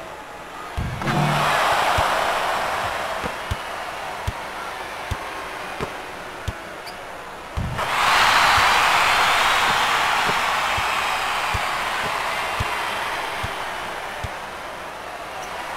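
A large crowd cheers loudly in an arena, then the cheering slowly fades.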